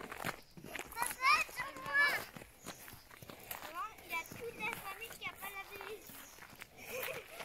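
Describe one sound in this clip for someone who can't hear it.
A young child speaks with animation close by.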